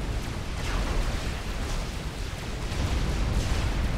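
Laser weapons fire with sharp zaps.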